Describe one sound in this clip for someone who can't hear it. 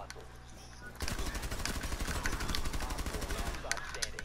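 Rapid gunfire rings out in sharp bursts.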